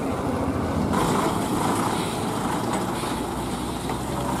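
A second diesel lorry drives past.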